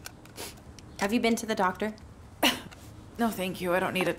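A young woman speaks weakly and hoarsely, close by.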